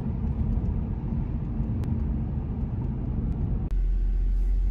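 A car engine rumbles low while driving along a road.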